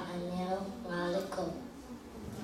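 A boy reads out through a microphone.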